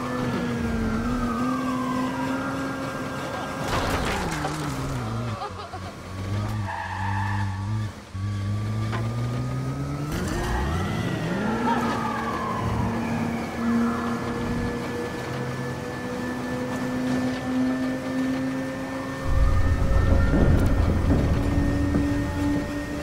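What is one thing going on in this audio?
A car engine roars and revs throughout.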